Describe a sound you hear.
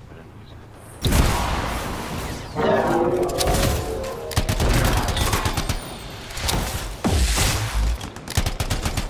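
Rapid gunfire crackles and bangs.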